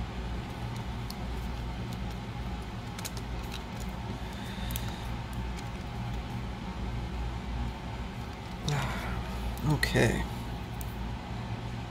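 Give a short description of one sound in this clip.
Small plastic parts click and tap softly as they are handled up close.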